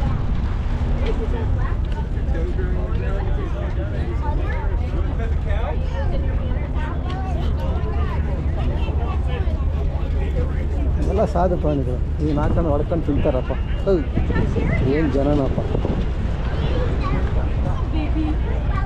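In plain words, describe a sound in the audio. A crowd of people chatter in the background outdoors.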